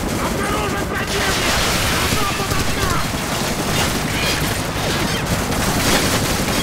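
Rapid gunfire crackles nearby.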